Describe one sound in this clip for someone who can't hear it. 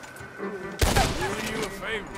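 A gunshot cracks loudly and echoes.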